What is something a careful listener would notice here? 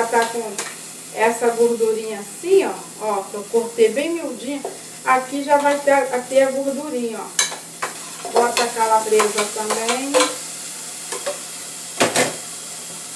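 A metal pot lid clinks against a pot.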